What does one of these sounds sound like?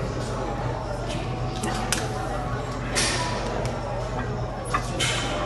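A man strains and grunts under a heavy load.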